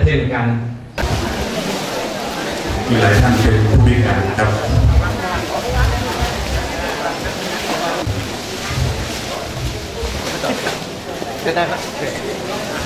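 A crowd of men and women chatters in a large, echoing room.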